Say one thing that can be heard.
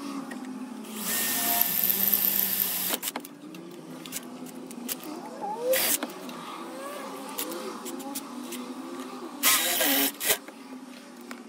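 A power drill whirs in bursts as it bores into metal.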